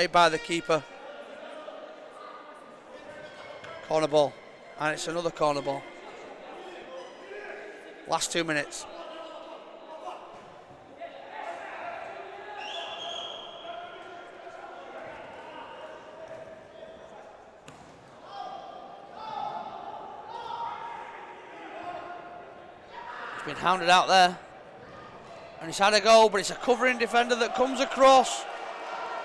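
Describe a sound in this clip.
A crowd murmurs in a large echoing indoor hall.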